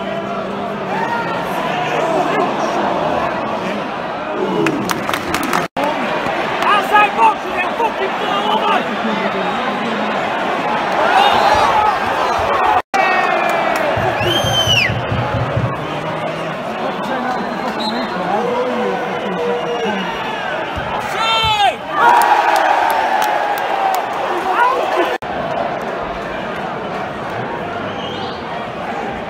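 A large stadium crowd chants and sings loudly all around.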